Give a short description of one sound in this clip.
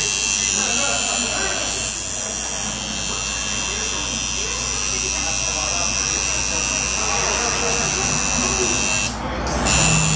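A tattoo machine buzzes steadily with a high whine.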